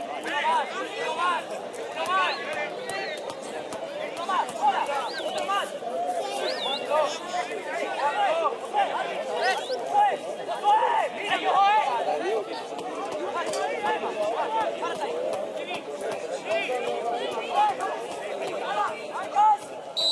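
Young men shout and call out to each other across an open outdoor field.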